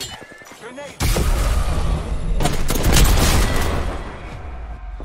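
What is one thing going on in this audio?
A gun fires rapid shots, loud and close.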